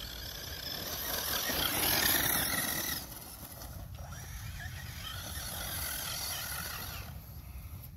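Small tyres crunch over grass and grit.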